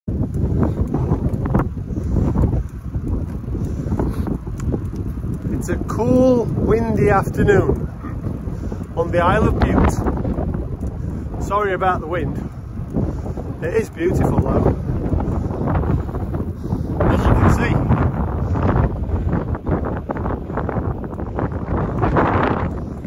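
Wind rumbles and buffets against a microphone outdoors.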